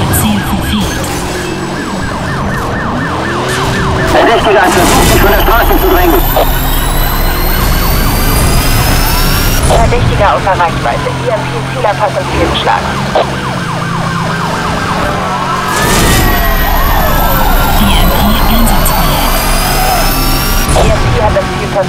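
A police siren wails nearby.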